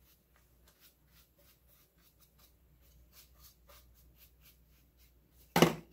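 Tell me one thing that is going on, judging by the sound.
A paintbrush dabs and scrapes against a hard surface.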